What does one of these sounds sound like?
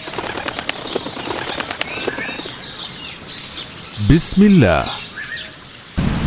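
Birds chirp.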